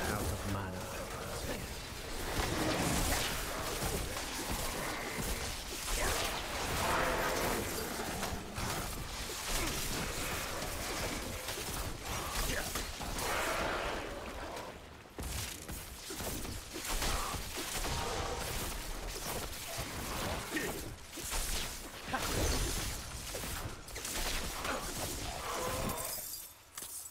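Crackling lightning spells and impacts burst again and again in a fight.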